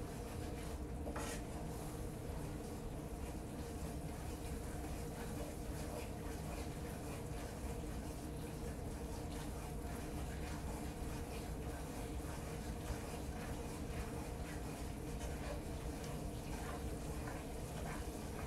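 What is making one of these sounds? A wooden spoon scrapes and stirs in a frying pan.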